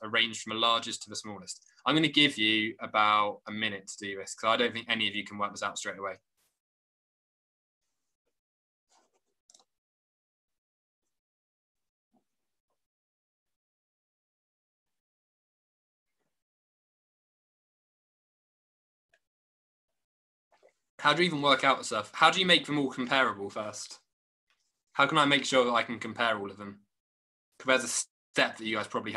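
A young man talks calmly and clearly over an online call, with pauses.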